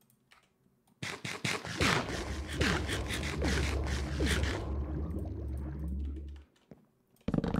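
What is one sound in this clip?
A burst of squelching game effects sounds.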